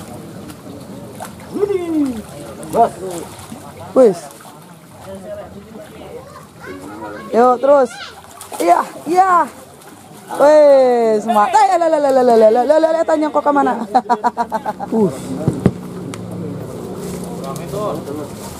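A fish splashes and thrashes in the water.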